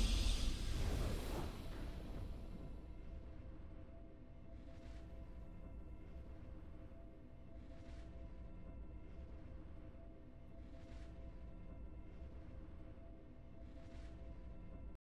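A triumphant game fanfare swells and then fades to a soft, steady hum.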